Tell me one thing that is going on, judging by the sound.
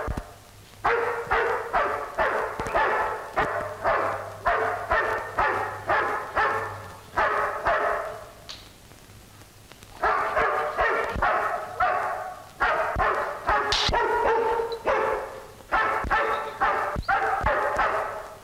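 A large dog barks loudly and rapidly, over and over.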